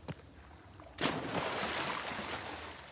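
A body plunges into water with a loud splash.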